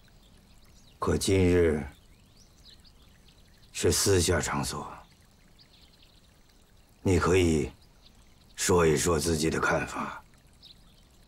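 A middle-aged man speaks calmly and slowly, close by.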